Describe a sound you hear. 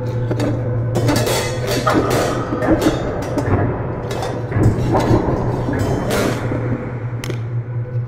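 Drums and cymbals are played loosely.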